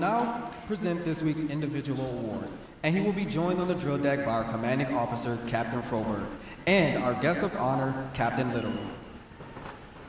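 A man announces loudly through a loudspeaker in a large echoing hall.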